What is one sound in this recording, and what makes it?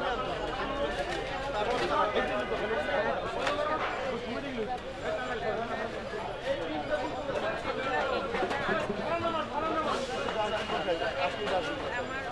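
A middle-aged woman speaks with men close by.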